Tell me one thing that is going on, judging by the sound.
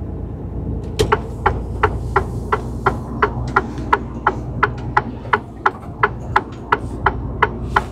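A turn signal ticks steadily inside the cab.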